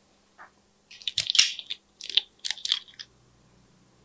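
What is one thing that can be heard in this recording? A small brush scrapes and taps against a plastic container.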